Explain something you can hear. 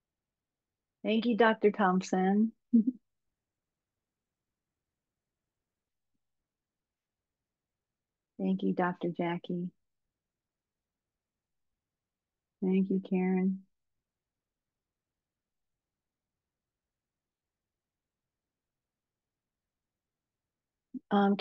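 A woman speaks calmly through a microphone on an online call, with long pauses.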